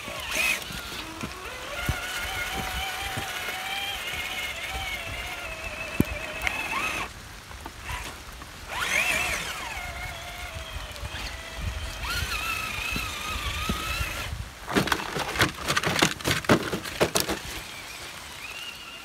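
A toy truck's small electric motor whines, rising and falling in pitch.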